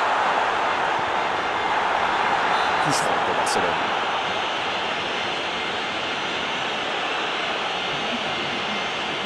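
A large crowd roars and cheers steadily in a stadium.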